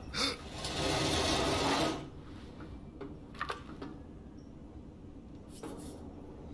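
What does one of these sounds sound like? Hands clank against the rungs of a metal ladder.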